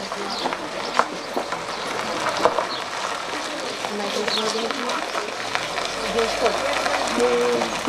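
Women chat as they walk.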